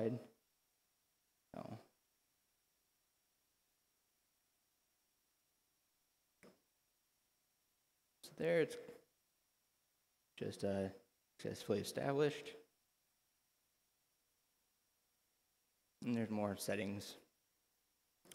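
A young man speaks calmly and close to a microphone, in short bursts with pauses.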